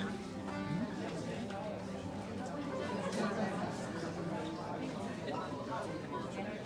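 A small orchestra of strings and folk instruments plays together in a room.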